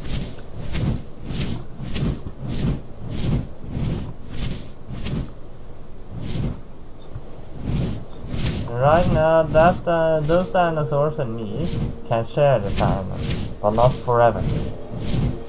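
Large wings beat steadily in a regular rhythm.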